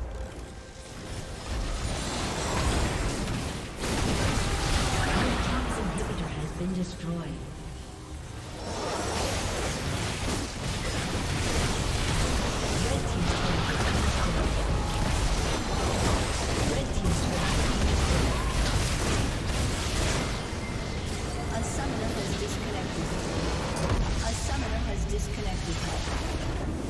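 Game spells and weapons clash and explode in a fast battle.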